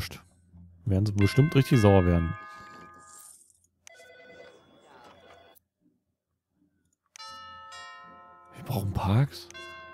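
A soft electronic chime sounds a few times.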